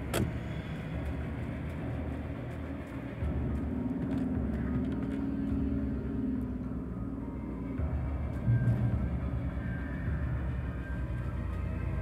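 Footsteps crunch through grass.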